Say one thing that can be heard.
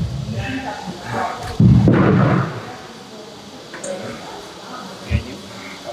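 Heavy dumbbells clank against a metal rack.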